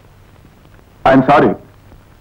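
An elderly man speaks briefly.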